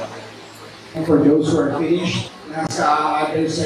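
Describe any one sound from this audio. Men chatter in a crowd nearby.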